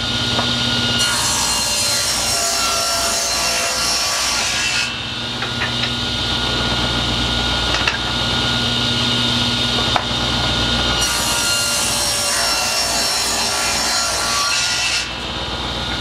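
A table saw blade cuts through wood with a loud rasping roar.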